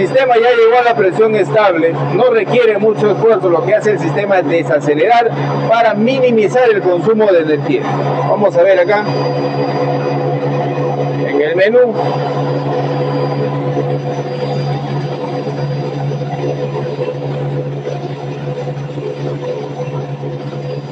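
An air compressor hums steadily close by.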